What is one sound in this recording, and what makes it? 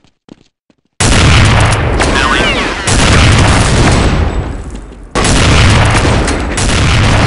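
Loud gunshots fire in rapid bursts nearby.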